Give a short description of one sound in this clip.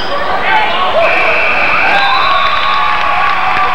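A referee blows a whistle sharply.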